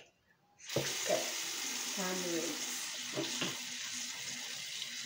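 A child speaks softly close by.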